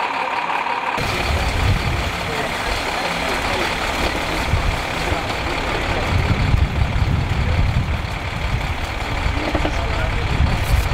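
An engine idles with a steady hum nearby.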